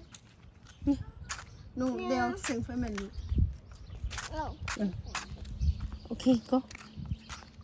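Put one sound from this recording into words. A young girl talks with excitement close by.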